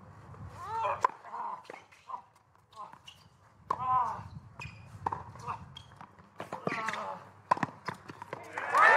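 A tennis ball is struck sharply by rackets back and forth.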